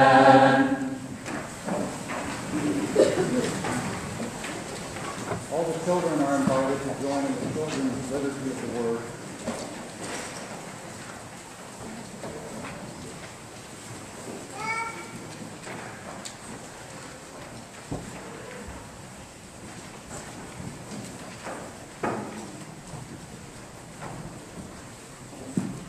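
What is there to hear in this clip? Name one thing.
A congregation murmurs and rustles in a large echoing hall.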